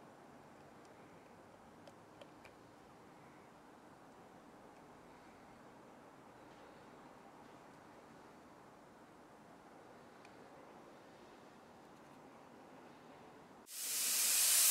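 Thick paint pours and drips softly into a plastic cup.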